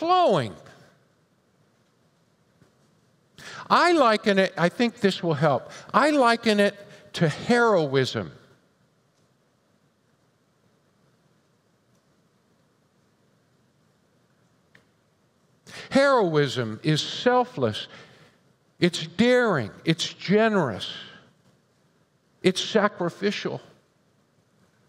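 An older man speaks calmly into a headset microphone, with long pauses.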